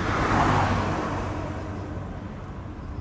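A van drives past close by and fades away.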